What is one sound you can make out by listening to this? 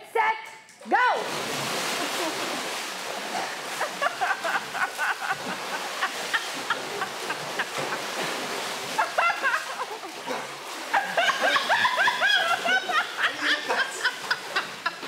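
Water splashes and churns loudly as people thrash in a pool.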